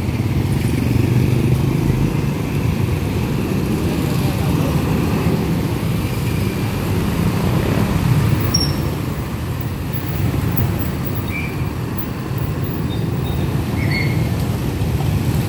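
Motorcycles and cars rumble past in a street outdoors.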